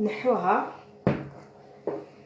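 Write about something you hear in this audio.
A plastic bowl thumps down on a wooden table.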